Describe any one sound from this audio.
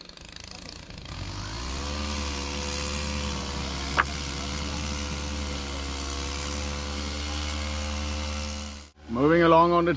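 A small engine hums steadily.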